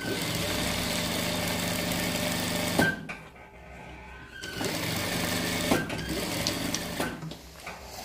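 An industrial sewing machine hums and stitches steadily, stopping briefly and starting again.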